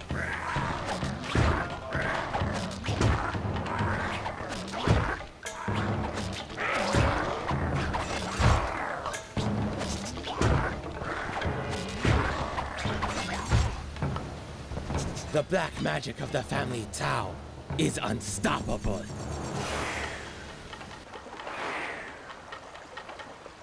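Game music plays.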